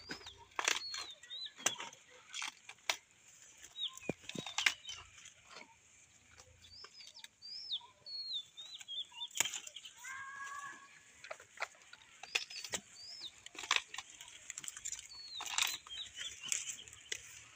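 Leafy plants rustle and snap as they are handled.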